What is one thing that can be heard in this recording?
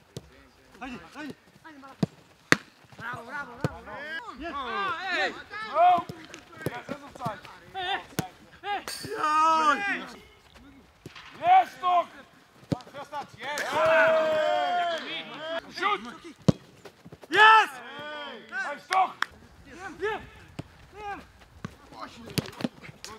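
A football is kicked hard several times.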